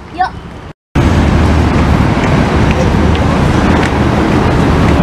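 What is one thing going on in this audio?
Children's footsteps patter on pavement.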